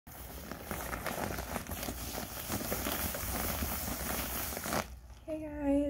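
A padded paper mailer rustles and crinkles as it is handled.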